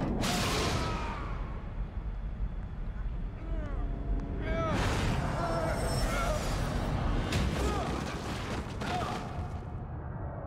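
A body falls and thuds heavily against hard walls.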